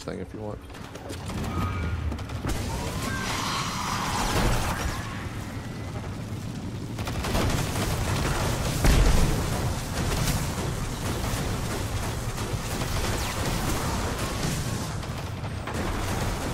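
A hover bike engine roars and whooshes steadily.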